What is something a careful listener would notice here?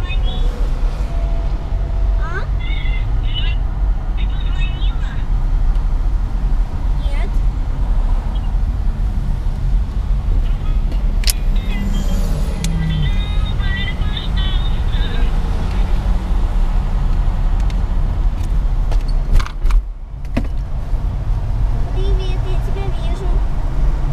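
A car drives steadily along a highway, its engine and tyres rumbling low.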